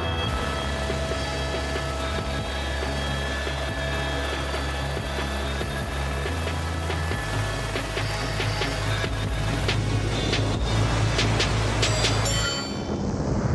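A helicopter engine and rotor drone steadily and loudly.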